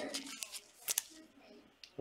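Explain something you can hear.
A plastic wrapper crinkles as it is torn open.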